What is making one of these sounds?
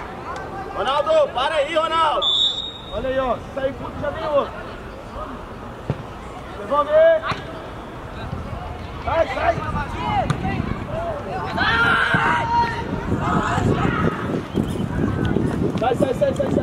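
Young players shout to each other across an open field outdoors.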